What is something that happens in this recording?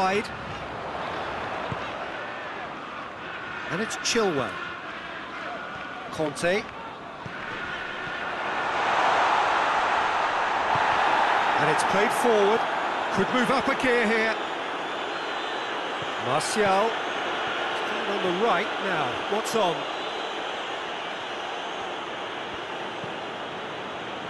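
A stadium crowd roars and swells.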